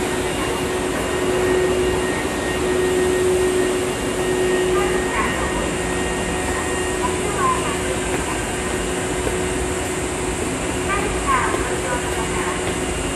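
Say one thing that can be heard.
A train rumbles steadily past a platform.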